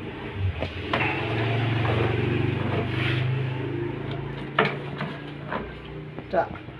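A dog growls and snarls close by.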